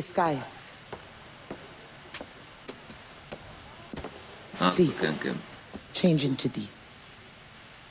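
A woman speaks to a man.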